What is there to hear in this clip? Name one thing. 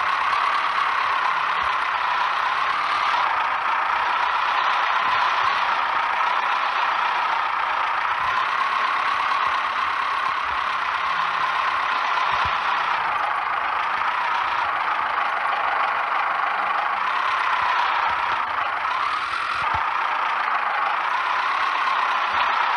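A truck engine rumbles and strains steadily as it climbs over rough ground.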